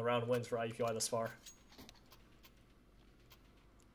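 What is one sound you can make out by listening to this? A weapon is swapped with a short metallic click.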